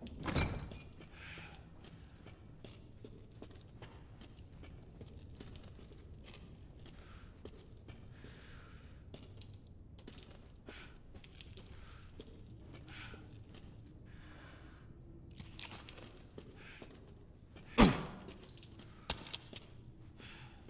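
Footsteps walk slowly over a stone floor.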